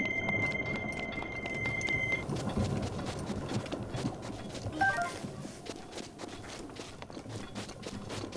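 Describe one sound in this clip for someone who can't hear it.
Footsteps patter quickly over grass.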